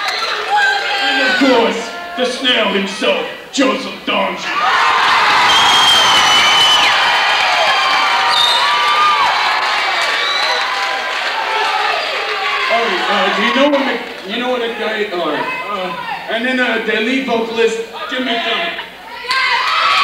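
A man talks with animation through a microphone and loudspeakers in a large echoing hall.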